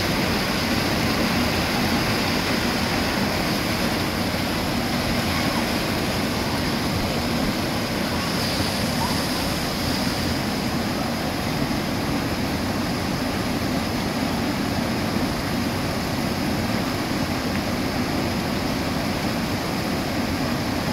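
Rushing water roars steadily as it pours over a weir.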